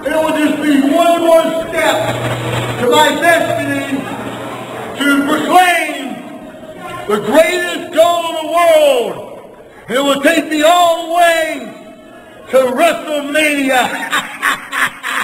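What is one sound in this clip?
An elderly man shouts gruffly and with animation, very close by.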